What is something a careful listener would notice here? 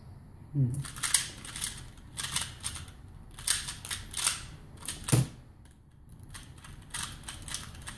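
Plastic puzzle cube pieces click and rattle rapidly as they are turned.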